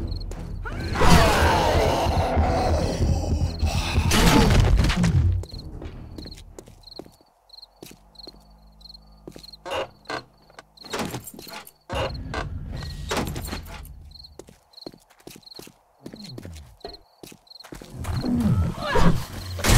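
A zombie growls and snarls up close.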